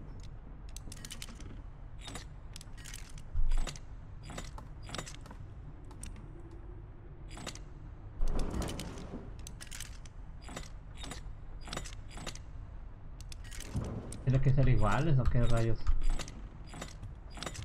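Metal dials click as they turn, one notch at a time.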